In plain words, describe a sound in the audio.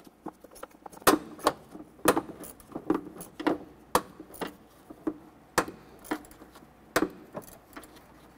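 A ratchet wrench clicks in quick, sharp strokes.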